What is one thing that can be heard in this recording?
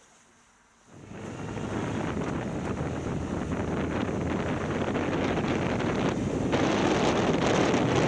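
Wind roars loudly past as a motorcycle rides along.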